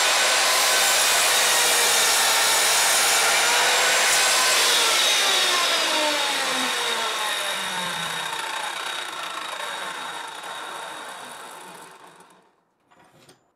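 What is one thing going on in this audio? A power saw whines loudly and slowly winds down to a stop.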